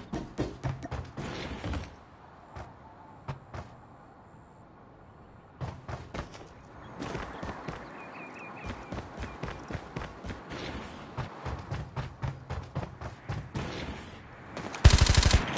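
Quick footsteps thud on wooden stairs and floors and on dirt.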